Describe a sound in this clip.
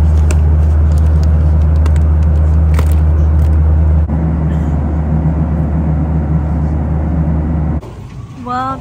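A jet engine drones steadily inside an aircraft cabin.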